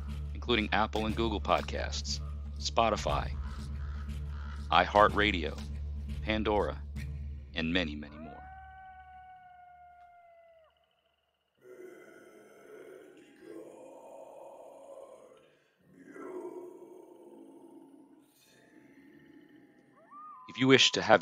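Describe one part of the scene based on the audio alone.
A man speaks through a microphone with animation.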